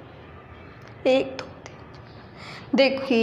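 A young woman speaks loudly nearby.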